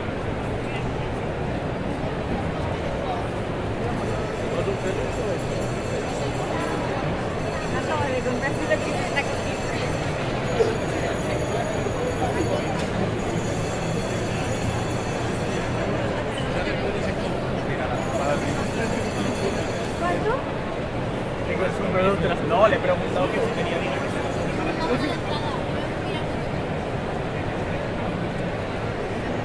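A crowd of people chatters in a large, busy indoor hall.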